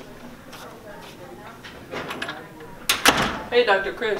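A door shuts.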